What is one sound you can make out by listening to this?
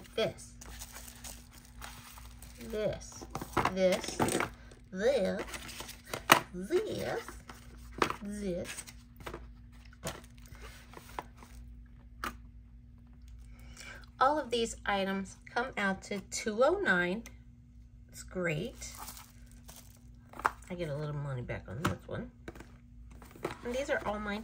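Small cardboard boxes tap and slide on a hard surface.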